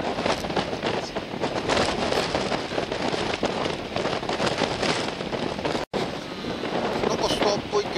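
Waves break and splash on the water.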